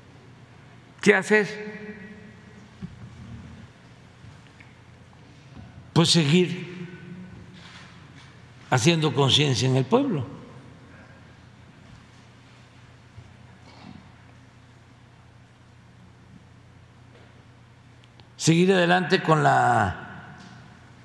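An elderly man speaks slowly through a microphone in short bursts with long pauses.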